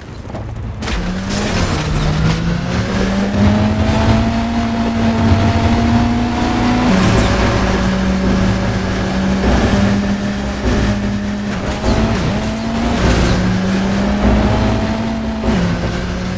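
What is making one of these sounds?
A car engine roars at high speed, rising and dropping in pitch as it changes gear.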